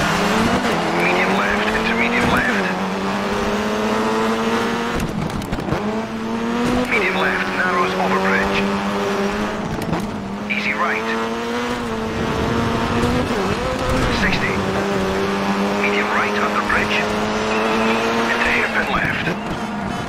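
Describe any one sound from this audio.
Tyres squeal through tight corners.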